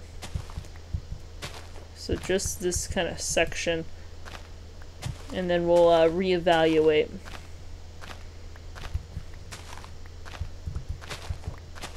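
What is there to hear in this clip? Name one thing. Dirt crunches in short bursts as it is dug out.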